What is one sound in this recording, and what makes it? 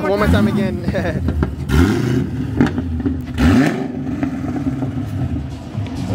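A sports car engine rumbles and revs as the car pulls away.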